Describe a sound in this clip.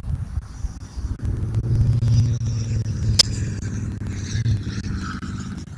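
Wind gusts and rumbles against the microphone outdoors.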